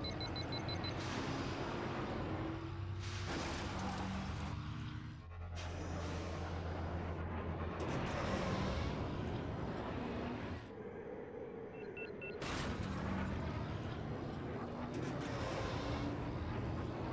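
Loud rushing whooshes sweep past a racing craft.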